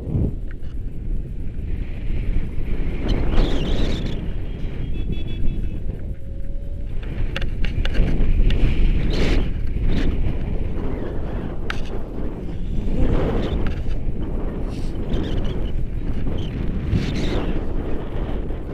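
A man talks loudly over the wind.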